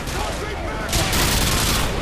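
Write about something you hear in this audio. A siren wails nearby.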